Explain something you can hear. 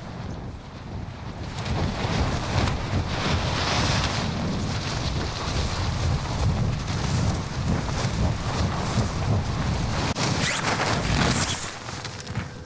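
Wind rushes loudly during a fast freefall.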